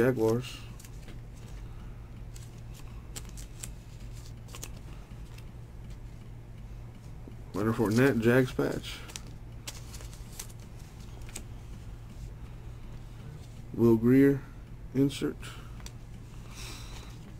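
Trading cards rustle softly and slide against one another.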